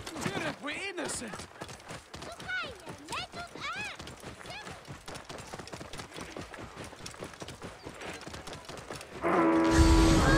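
A camel's hooves thud steadily on a dirt path.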